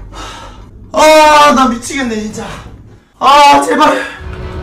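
A young man groans and speaks in despair close to a microphone.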